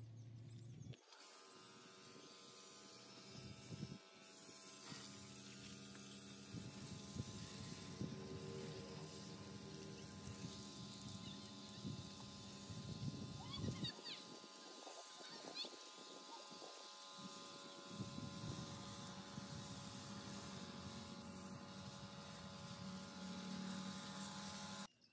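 A pressure washer motor hums steadily.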